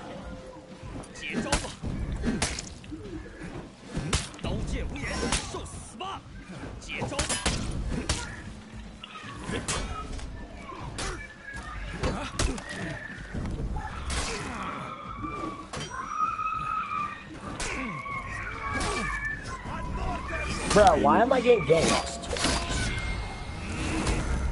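Swords clash and strike in quick, repeated metallic blows.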